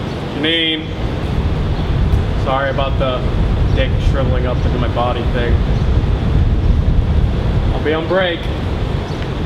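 A man speaks in short bursts nearby.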